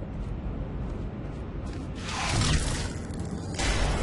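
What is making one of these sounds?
A heavy metal door slides open with a mechanical whir.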